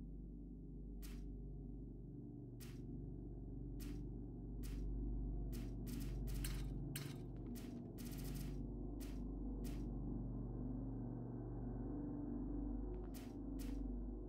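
Short interface clicks tick as a game map is scrolled.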